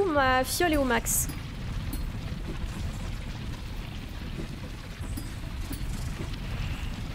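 A young woman talks quietly into a close microphone.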